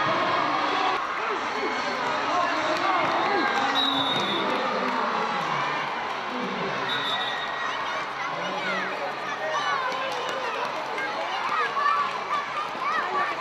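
Children chatter and shout close by outdoors.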